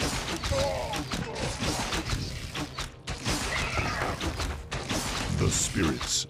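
Weapons clash and strike repeatedly in a fast battle.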